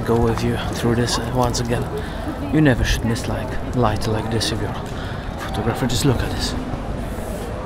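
A young man talks with animation, close up.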